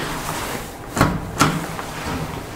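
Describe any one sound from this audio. An elevator button clicks.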